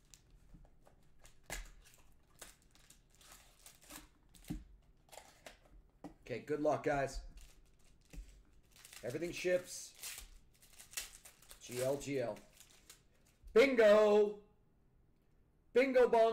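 Foil wrappers crinkle and tear as card packs are opened by hand.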